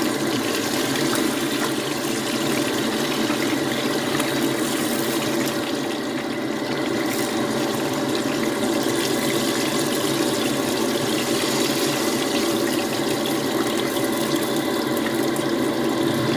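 A wooden spatula scrapes against a metal pan.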